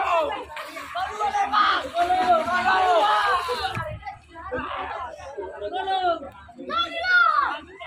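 Swimmers splash in the water.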